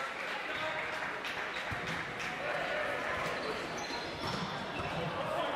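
Voices of players and spectators echo around a large indoor hall.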